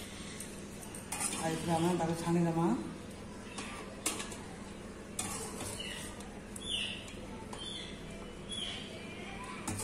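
A metal spatula scrapes and clinks against a steel pan.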